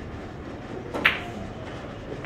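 A cue tip strikes a ball with a sharp click.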